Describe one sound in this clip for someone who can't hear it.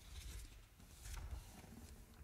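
A sheet of paper rustles as a page is turned.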